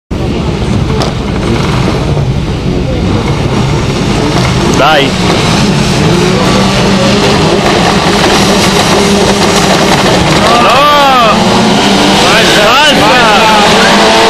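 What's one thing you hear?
Several racing car engines roar and rev, growing louder as the cars approach.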